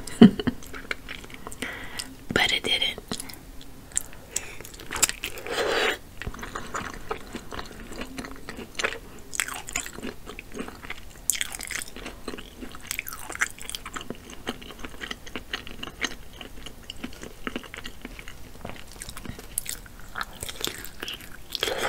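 Fingers squish and peel soft seafood shell close to a microphone.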